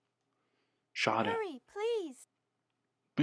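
A young woman speaks pleadingly and urgently.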